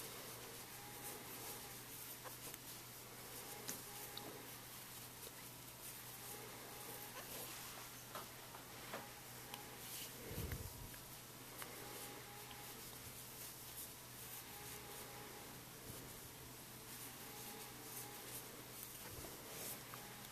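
A crochet hook softly clicks and scrapes against yarn.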